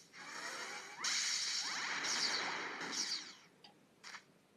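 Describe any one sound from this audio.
A video game plays a loud burst of attack effects.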